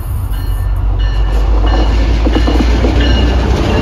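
Train wheels clatter and squeal along the rails close by.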